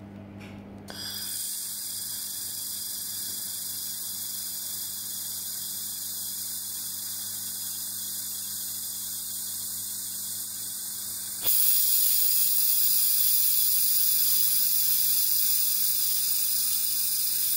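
A laser welder hisses steadily with crackling sparks.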